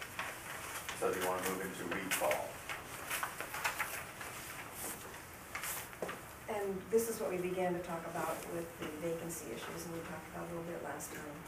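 A man speaks calmly in a quiet room.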